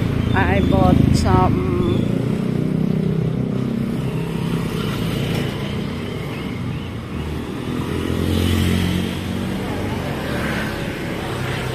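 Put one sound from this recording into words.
A small motor engine hums steadily close by.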